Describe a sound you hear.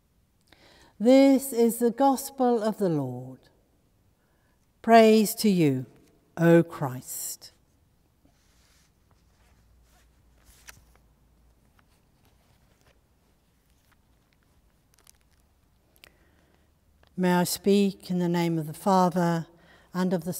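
An elderly woman sings and chants slowly, her voice echoing in a large resonant hall.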